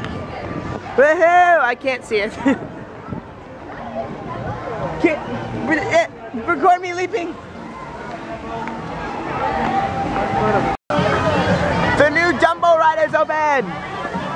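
Young people scream and shout with excitement close by.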